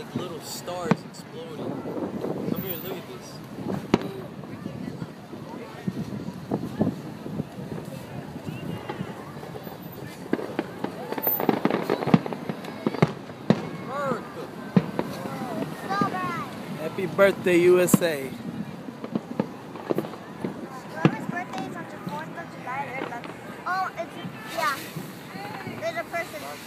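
A crowd of people chatter and cheer nearby.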